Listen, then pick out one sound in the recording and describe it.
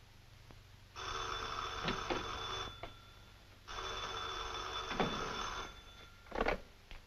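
A telephone rings loudly, twice.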